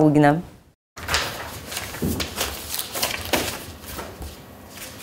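Paper sheets rustle and flap as they are leafed through.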